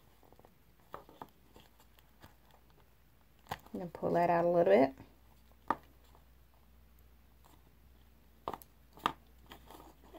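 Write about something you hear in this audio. Small wooden sticks tap and click against each other.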